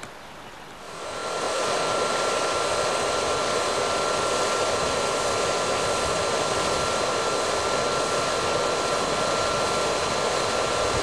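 Water from a fountain spout splashes steadily into a pool.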